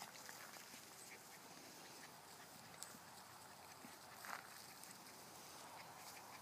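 Small puppies patter softly through grass.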